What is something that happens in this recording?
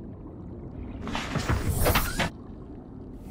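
A loud rushing whoosh sounds.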